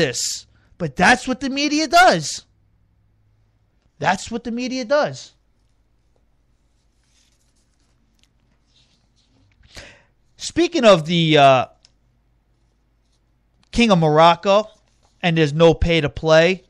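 A man speaks into a microphone in short bursts with pauses.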